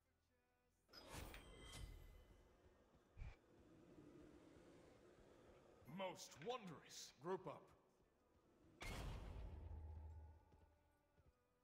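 Short fiery magical effects whoosh and crackle.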